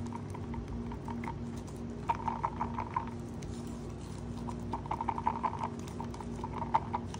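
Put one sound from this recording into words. A wooden stick stirs paint in a plastic cup with quick, light scraping taps.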